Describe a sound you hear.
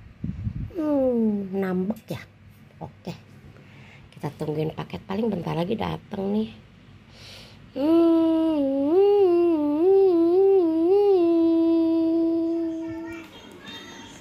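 A dog whines in long, wavering cries.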